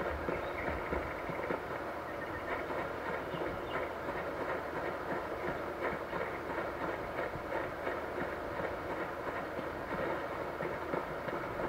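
Game sound effects and music play from a phone's small speaker.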